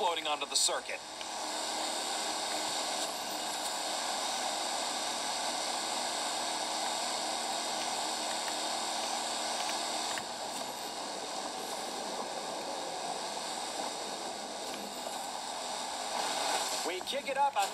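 A speedboat engine drones.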